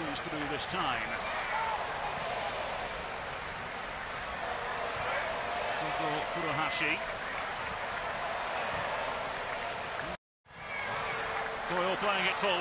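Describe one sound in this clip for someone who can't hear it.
A large stadium crowd roars and murmurs in the distance.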